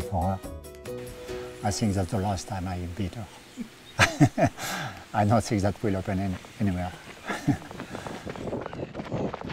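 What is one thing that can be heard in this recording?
An elderly man speaks calmly into a microphone, close by.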